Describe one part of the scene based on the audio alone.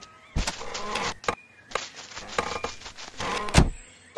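A small door knocks shut.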